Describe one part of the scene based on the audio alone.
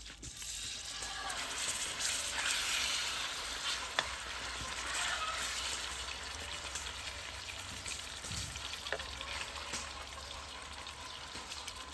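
A metal spoon scrapes and clinks against a wok.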